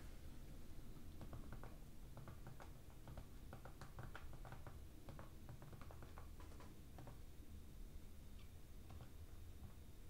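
Fingers tap lightly on a small keyboard.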